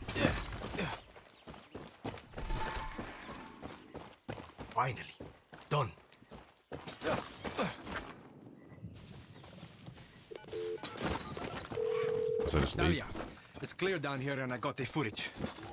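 Footsteps walk on hard ground.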